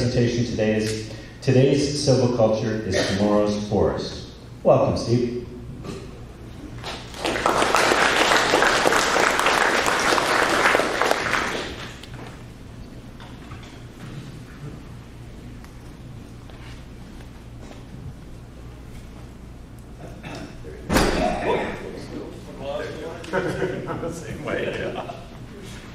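A man speaks calmly through a microphone and loudspeakers in a large room.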